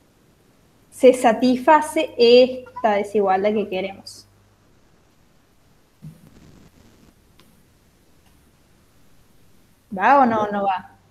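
A woman speaks calmly through a microphone, explaining in short bursts with pauses.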